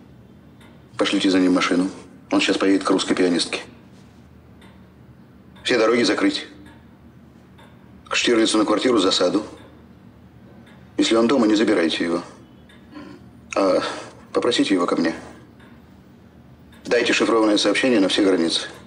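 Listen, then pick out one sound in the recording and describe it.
An elderly man speaks sternly in short bursts, close by.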